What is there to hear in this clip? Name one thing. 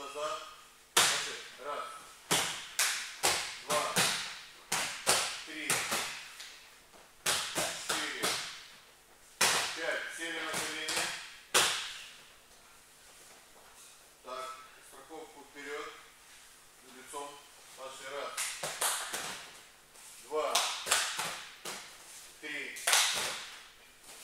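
Bodies thump and slap onto gym mats again and again.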